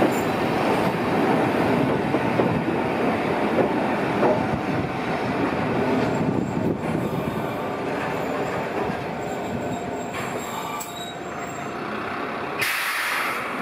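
A train rumbles along the tracks and slowly comes to a stop.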